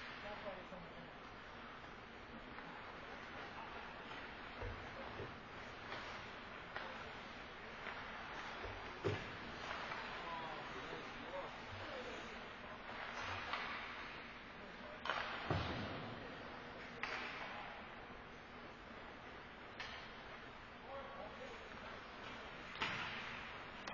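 Skates scrape and hiss across the ice in a large echoing arena.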